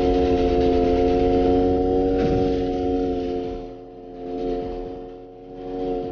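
A car engine hums steadily, rising and dipping in loudness.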